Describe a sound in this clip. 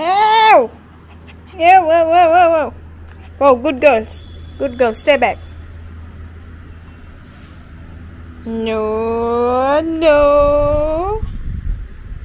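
A puppy yelps and whines in high, yapping cries.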